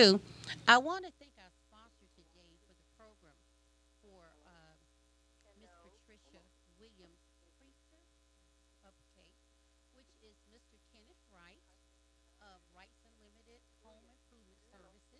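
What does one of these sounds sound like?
A woman speaks faintly and calmly in the background.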